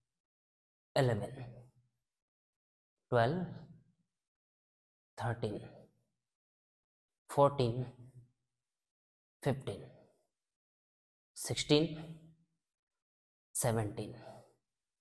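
A man counts out loud in short bursts, in an echoing room.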